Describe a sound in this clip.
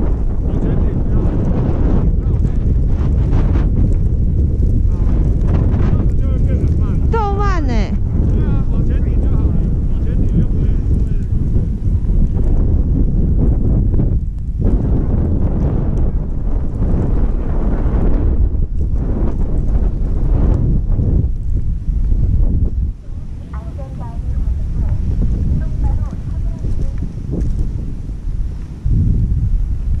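Wind rushes loudly past outdoors.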